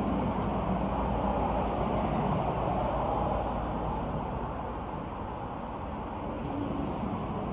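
Wind rustles the leaves of tall trees outdoors.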